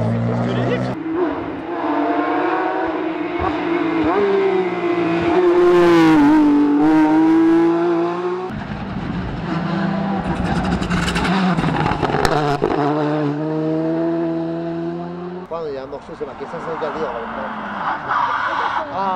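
A rally car engine roars loudly as it approaches and revs hard through a bend.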